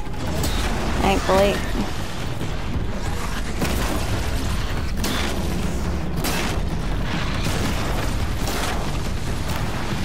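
Metal crashes and bangs ring out in a fierce fight.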